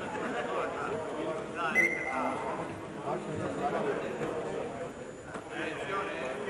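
A crowd of spectators chatters.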